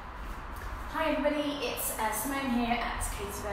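A woman speaks cheerfully, close by, in a small echoing room.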